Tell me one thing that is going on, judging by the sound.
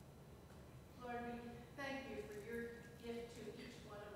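A piano plays soft notes.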